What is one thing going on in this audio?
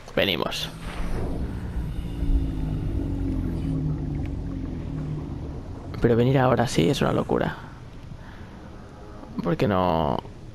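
Water bubbles and swirls around a diver swimming underwater.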